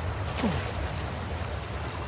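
Boots splash through water.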